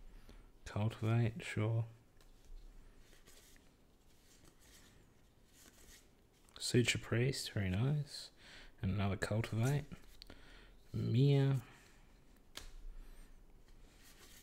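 Playing cards slide and flick against each other in a hand.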